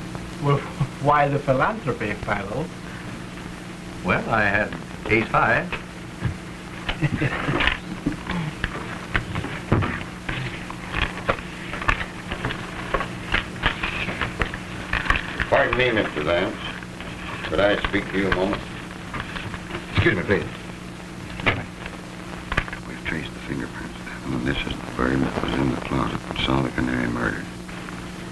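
An adult man speaks, heard through an old, hissy film soundtrack.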